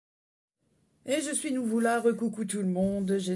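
An older woman speaks with animation close to a microphone.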